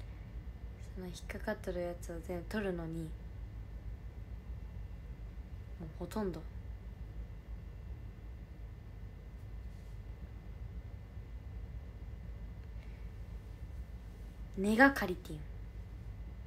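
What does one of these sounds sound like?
A young woman speaks softly and close to the microphone, in short bursts.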